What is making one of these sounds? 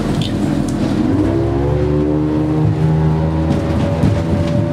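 A boat engine revs up and rises in pitch.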